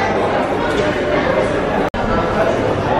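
Men and women chat at nearby tables.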